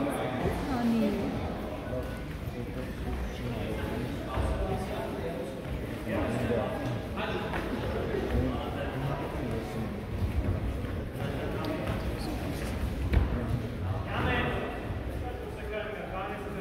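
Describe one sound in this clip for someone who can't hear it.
Children and men talk and call out in a large echoing hall.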